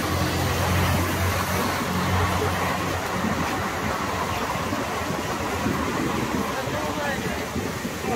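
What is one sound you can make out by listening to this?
City traffic rumbles steadily nearby.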